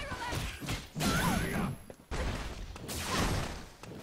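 A blast of energy bursts with a sharp crackle.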